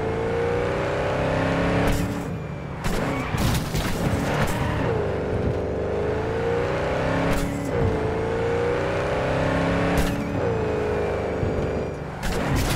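A car engine roars and revs up and down through gear changes.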